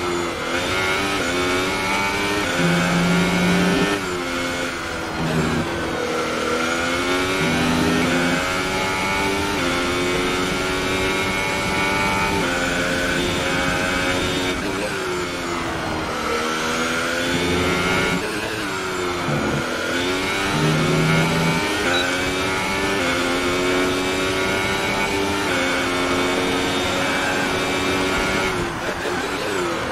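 A racing car engine screams at high revs, rising through the gears and dropping when braking.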